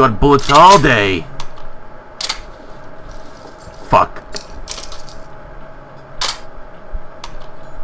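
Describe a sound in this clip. A gun's parts click and clack as it is reloaded.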